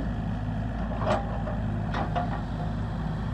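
Gravel clatters and scrapes as an excavator bucket digs.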